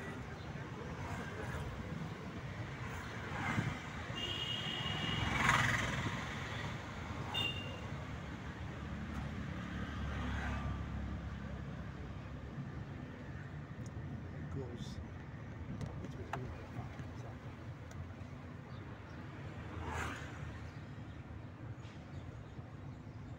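A car rumbles steadily along a road.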